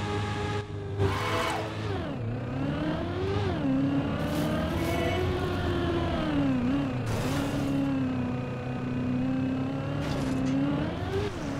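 A race car engine whines steadily, its pitch rising and falling as the car speeds up and slows.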